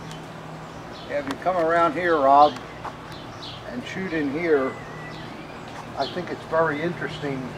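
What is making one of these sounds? An elderly man speaks calmly nearby, outdoors.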